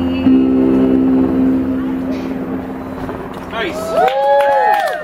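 An electric keyboard holds a steady chord through a loudspeaker.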